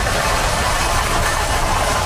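A pallet jack rattles as it is pulled across a hard floor.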